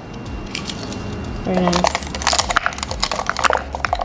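Brush handles clatter against each other in a holder.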